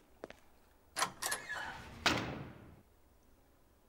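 A heavy metal door swings open with an echoing clatter.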